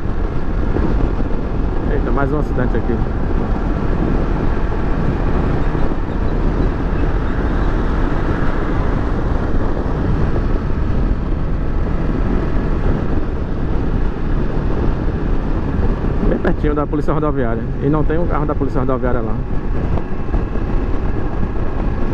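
A parallel-twin motorcycle engine hums while cruising on a highway.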